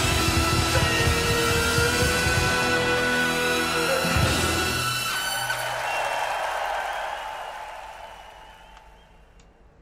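Live rock music with pounding drums and a singer plays loudly, then fades away.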